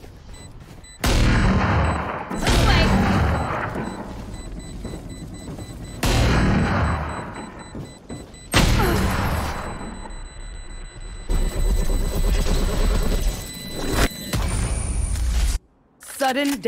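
Magical energy bursts whoosh and roar loudly.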